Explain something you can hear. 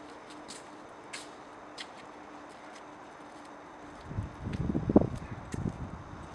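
A dog's paws patter on the pavement outdoors.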